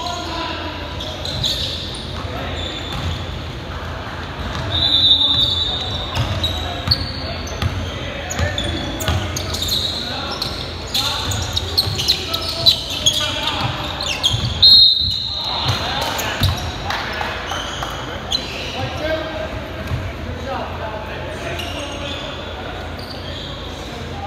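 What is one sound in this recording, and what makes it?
Sneakers squeak sharply on a wooden court, echoing in a large hall.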